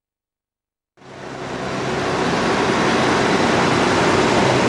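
A heavy truck engine idles.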